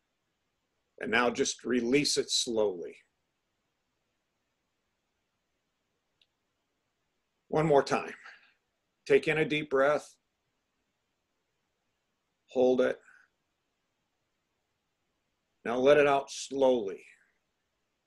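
A middle-aged man speaks calmly through an online call, pausing between phrases.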